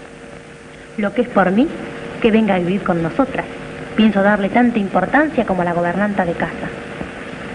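A woman speaks with animation, heard through an old film soundtrack.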